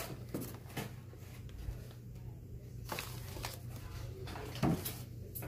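Objects clatter and rustle softly as a hand moves things about in a box close by.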